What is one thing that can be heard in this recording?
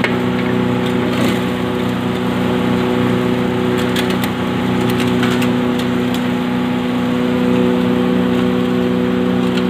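A heavy machine hums and drones steadily.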